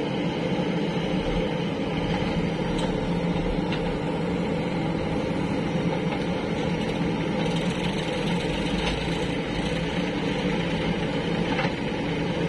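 A digger bucket scrapes and drops wet soil.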